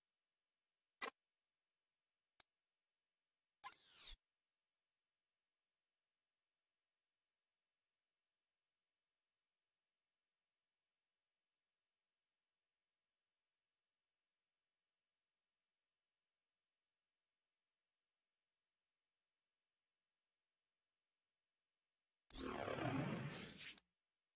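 Short electronic menu sounds whoosh and chime.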